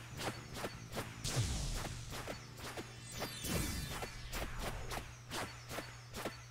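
Rapid sharp electronic hit sounds repeat quickly.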